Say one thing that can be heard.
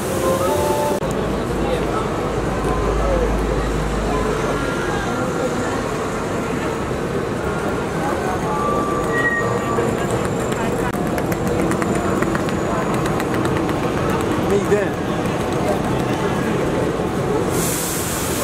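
A crowd murmurs on a busy street.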